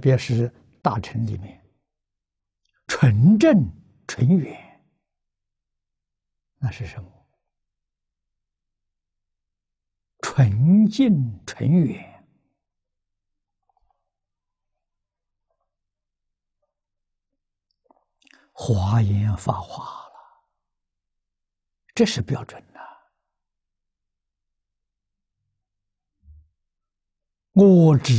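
An elderly man speaks calmly and close to a microphone, with long pauses between phrases.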